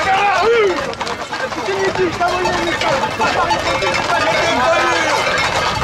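A crowd of men shouts and talks excitedly nearby, outdoors.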